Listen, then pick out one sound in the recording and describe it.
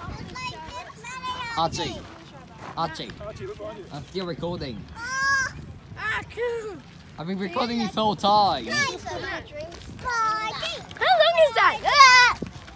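Young girls talk and shout excitedly close by.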